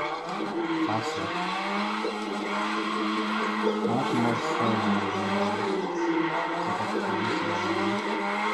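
Tyres screech as a game car drifts.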